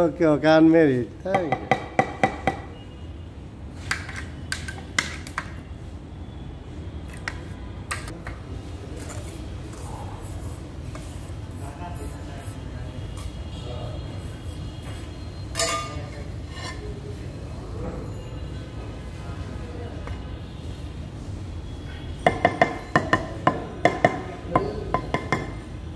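A hammer taps sharply on floor tiles.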